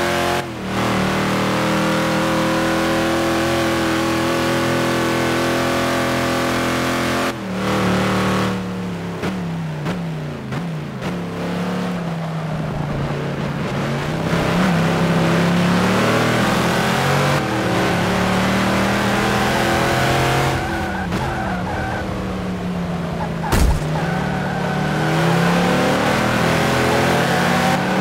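A racing car engine roars at high revs, dropping and rising in pitch through gear changes and corners.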